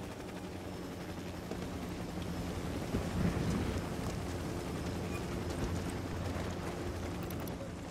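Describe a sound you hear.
A helicopter's rotor drones low and steady.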